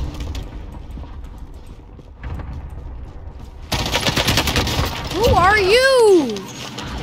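Rapid gunfire rings out close by.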